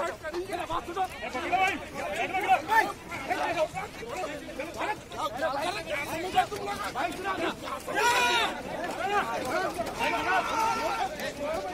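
A crowd of men shouts and argues agitatedly close by.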